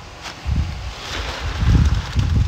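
A trowel scrapes in wet cement.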